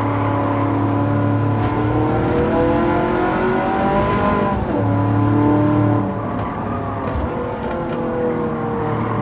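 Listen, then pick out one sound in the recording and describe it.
Other racing cars' engines drone nearby.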